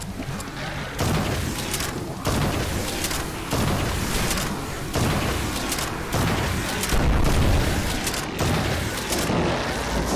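A gun fires energy bolts in rapid loud bursts.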